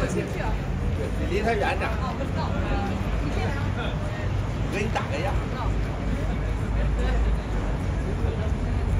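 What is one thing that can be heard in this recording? Men and women chatter casually in a crowd nearby, outdoors.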